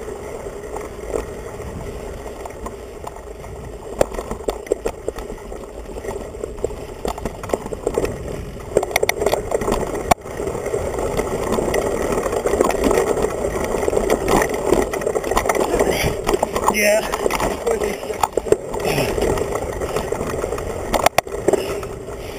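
A mountain bike frame rattles and clatters over bumps.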